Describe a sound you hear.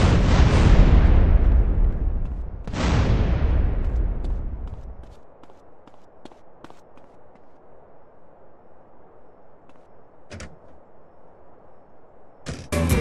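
Footsteps clank steadily up metal stairs.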